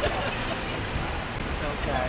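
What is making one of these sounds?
A man laughs heartily.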